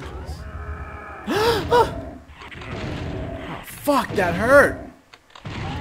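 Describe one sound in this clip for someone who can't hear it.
A monster snarls and growls.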